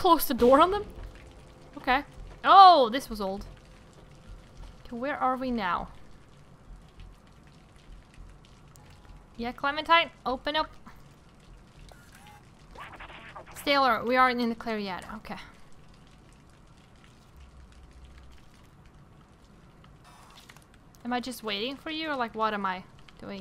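A young woman talks with animation into a close microphone, in short bursts.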